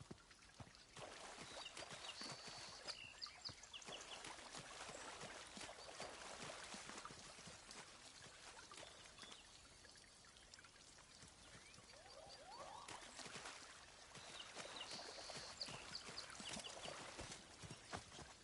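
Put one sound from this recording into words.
Feet splash and wade through shallow water.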